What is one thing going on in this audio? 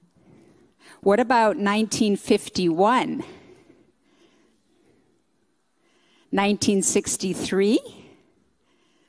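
An older woman sings into a microphone in a reverberant hall.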